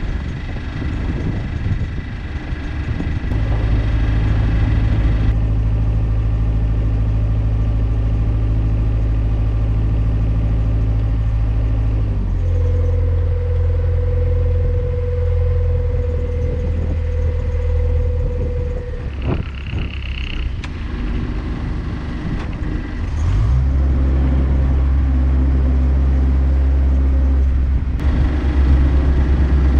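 A boat's engine chugs steadily, changing speed at times.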